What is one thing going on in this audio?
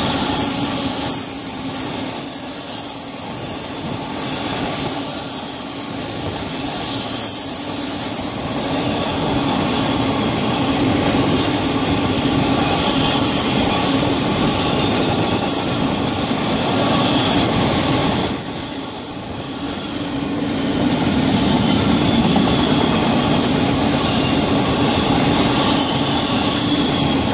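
A long freight train rumbles and clatters steadily past nearby.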